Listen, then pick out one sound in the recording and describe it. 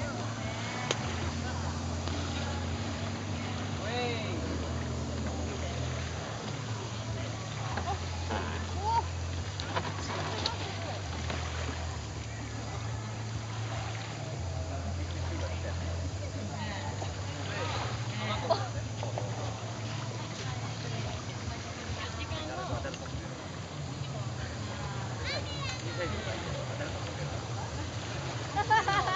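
A motorboat engine drones steadily across open water, rising and falling.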